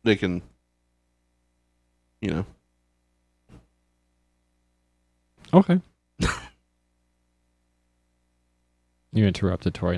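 A young man speaks into a close microphone in short bursts, heard over an online call.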